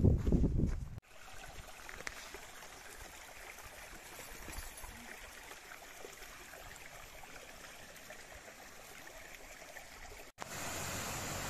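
A shallow brook trickles over stones.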